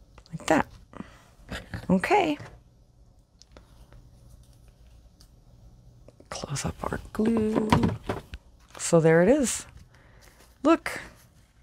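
Stiff paper rustles and taps as hands handle it.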